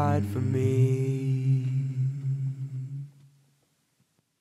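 An acoustic guitar chord rings out and slowly fades away.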